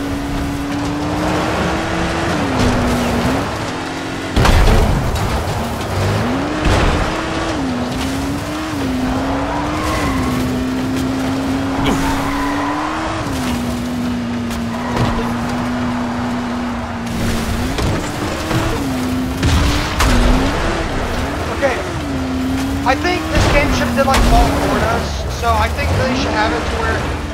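Tyres rumble and bump over rough ground.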